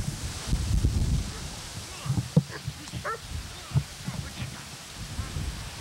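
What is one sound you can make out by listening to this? Grass and leaves rustle and brush close by.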